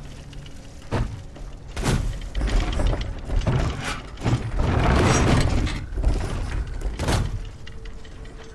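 Loud booms and crashes burst out in quick succession.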